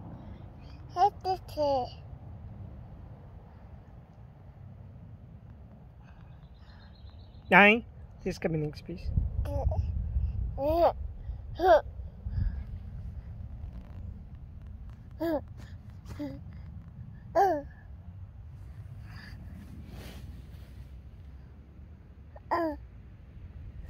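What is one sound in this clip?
A toddler babbles and coos close by.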